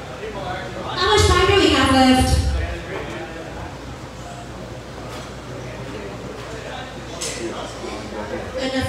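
A man sings into a microphone through loudspeakers.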